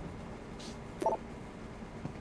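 A short electronic menu beep sounds.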